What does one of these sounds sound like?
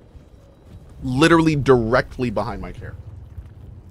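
A man speaks loudly and with animation into a nearby microphone.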